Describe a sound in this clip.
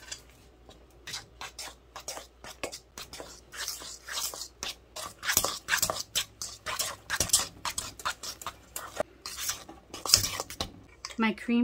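A spoon scrapes and clinks quickly against a metal bowl.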